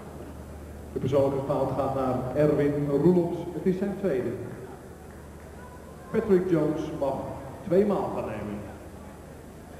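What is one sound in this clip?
A crowd chants loudly in a large echoing hall.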